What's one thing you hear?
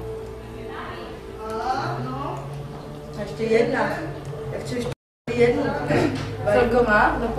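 A young woman talks nearby in a calm voice.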